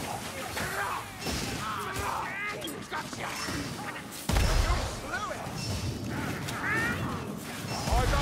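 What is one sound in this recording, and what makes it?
Blades clash and strike in close combat.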